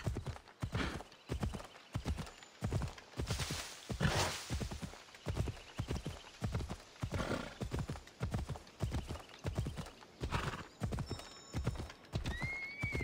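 A horse gallops with quick, steady hoofbeats on the ground.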